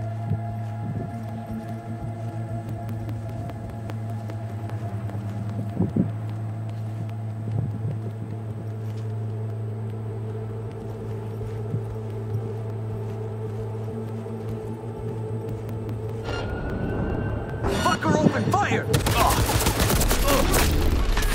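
A low, steady electrical hum drones throughout.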